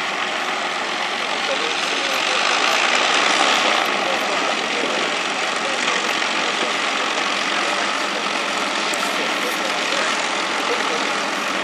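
Several propeller engines of a large aircraft roar loudly nearby.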